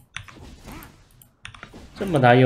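Weapons clash and spells crackle in a fast fight.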